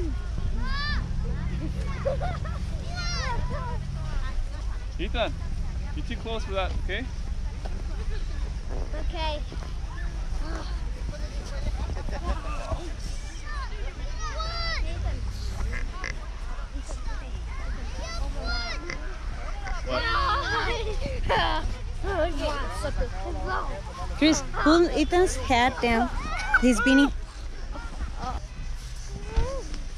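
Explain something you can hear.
Children shout and laugh excitedly close by.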